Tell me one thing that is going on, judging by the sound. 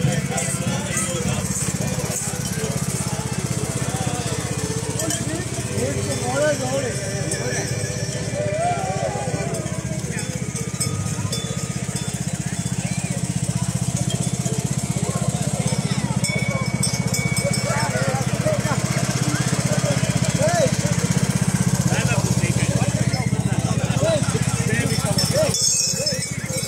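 A ride-on mower engine hums steadily close by.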